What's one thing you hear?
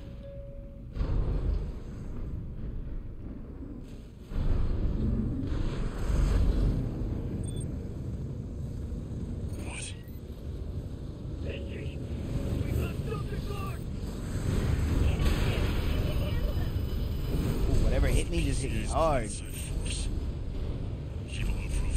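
Explosions boom and rumble in a video game.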